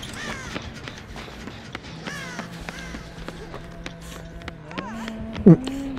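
Footsteps run quickly across a hard floor.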